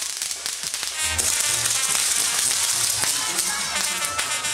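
Firecrackers crackle and pop in rapid bursts.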